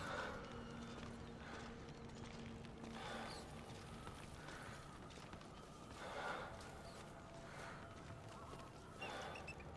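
Clothing and gear rustle and scrape over dry ground as a figure crawls.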